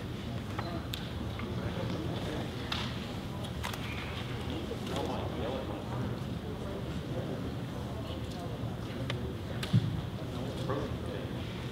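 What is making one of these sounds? Men murmur quietly at a distance in a large echoing hall.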